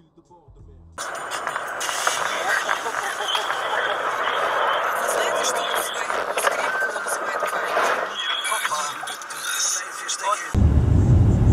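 Snow hisses and crunches against a car driving at night.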